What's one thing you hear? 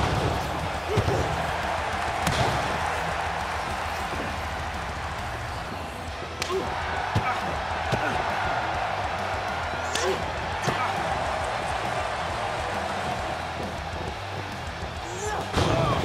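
Heavy bodies thud onto the wrestling mat.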